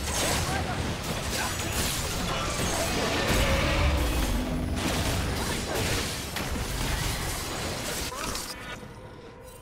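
Magical blasts and clashing strikes burst loudly in rapid succession.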